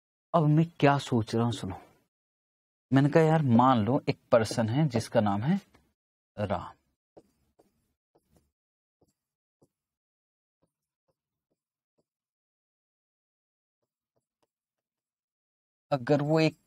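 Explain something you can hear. A man lectures calmly into a close microphone, in short bursts with pauses.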